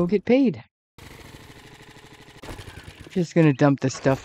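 A motorbike engine runs.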